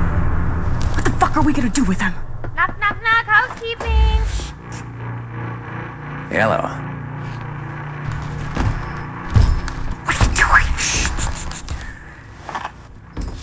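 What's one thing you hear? A man speaks menacingly, close by.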